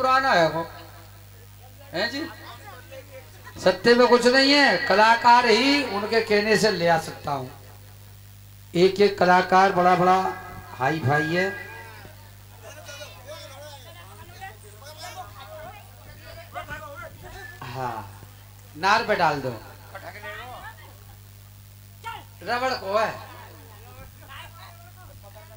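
An elderly man sings loudly through a microphone and loudspeaker, in bursts with pauses.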